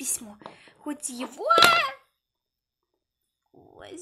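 A plastic toy figure tips over and knocks onto a hard floor.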